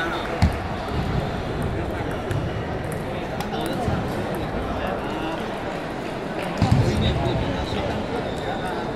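Ping-pong balls click on tables and paddles throughout a large echoing hall.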